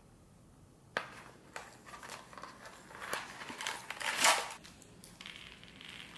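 A cardboard box rustles and taps as hands handle it.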